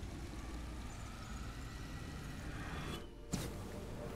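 A burst of magic energy whooshes and crackles.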